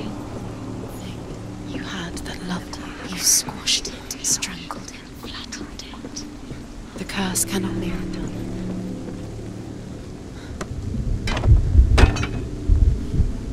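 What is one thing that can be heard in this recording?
Footsteps hurry over wooden boards.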